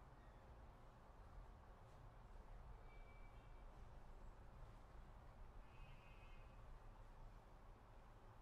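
A bowed string instrument plays a soft, slow melody.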